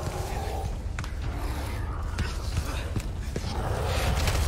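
Blows strike with heavy thuds.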